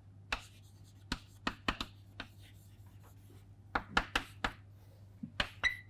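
Chalk taps and scrapes on a chalkboard.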